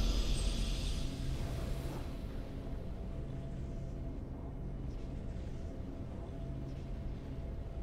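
Triumphant game music plays.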